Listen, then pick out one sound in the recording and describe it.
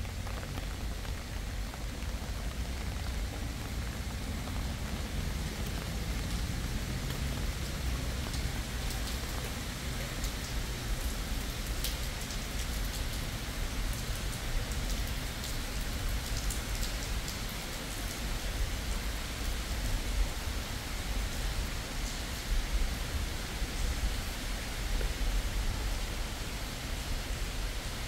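Footsteps tap on wet pavement nearby.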